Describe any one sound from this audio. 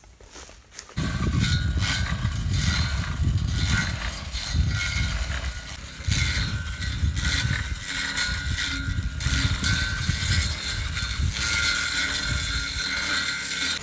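A brush cutter engine whines steadily at a distance.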